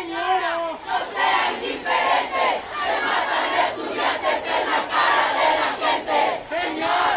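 A crowd of young women chants loudly outdoors.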